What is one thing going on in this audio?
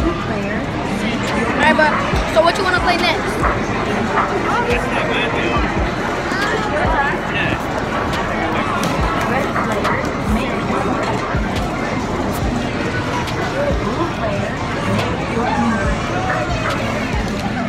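Arcade games beep and jingle all around.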